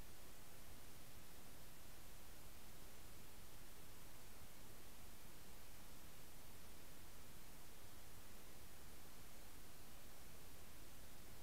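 Water hisses and rumbles steadily, heard muffled from underwater.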